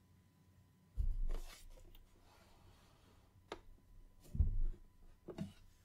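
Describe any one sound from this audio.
A hard plastic case thumps down on a surface.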